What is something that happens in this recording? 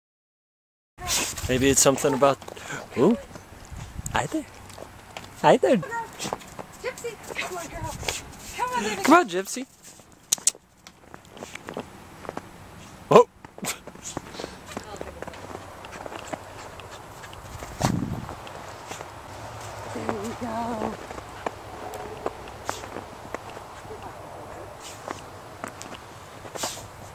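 A dog sniffs and snuffles in snow.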